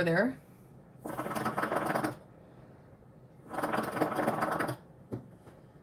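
Water bubbles and gurgles loudly in a hookah.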